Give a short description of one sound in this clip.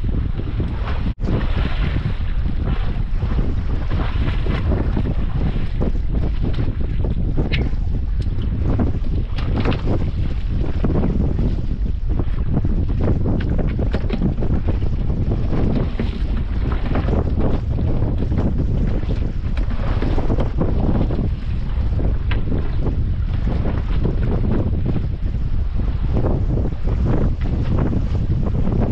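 Wind blows hard across the open sea.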